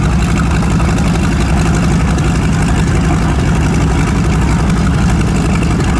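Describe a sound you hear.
Twin piston engines of a propeller plane idle with a loud, steady, throbbing roar.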